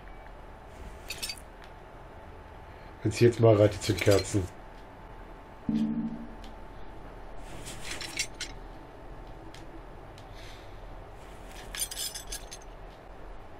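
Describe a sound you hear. Metal bolts clink and rattle as they are unscrewed.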